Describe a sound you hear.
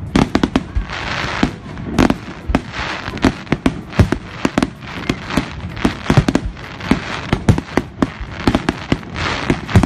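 Fireworks crackle and sizzle overhead.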